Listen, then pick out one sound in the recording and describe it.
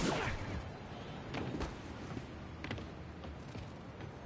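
Quick footsteps run across a rooftop.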